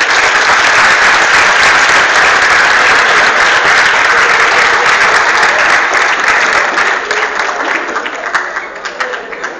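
A large crowd applauds and cheers loudly in an echoing hall.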